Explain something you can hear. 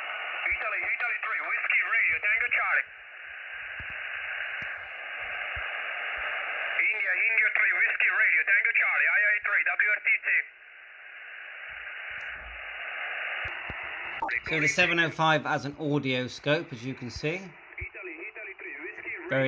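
A voice crackles through a radio loudspeaker in short bursts.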